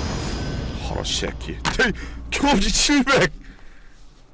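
A heavy punch lands with a loud thud.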